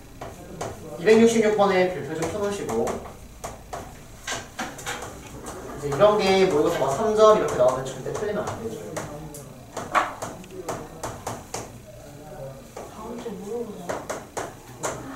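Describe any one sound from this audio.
A young man speaks calmly nearby, explaining.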